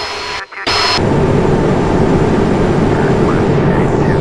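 Jet engines roar loudly and steadily from inside a cockpit.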